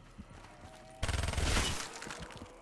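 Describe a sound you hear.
A gun fires a rapid, loud burst of shots.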